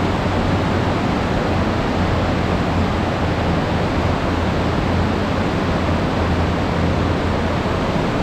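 A fast mountain stream rushes loudly over rocks.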